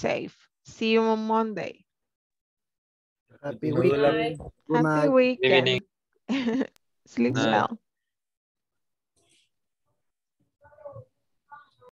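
A woman speaks with animation into a headset microphone, heard through an online call.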